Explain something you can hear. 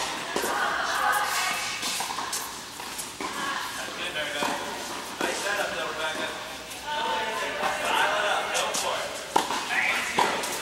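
Tennis racquets strike a ball in a large echoing hall.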